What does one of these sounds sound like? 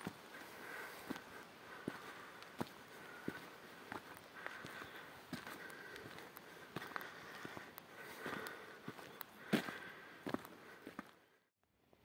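Footsteps crunch on dry ground and brush.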